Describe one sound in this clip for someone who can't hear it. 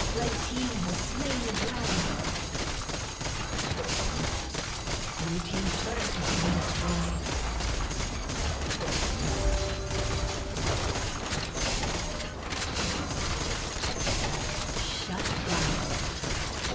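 Magic blasts and weapon strikes crackle in a fast, busy fight.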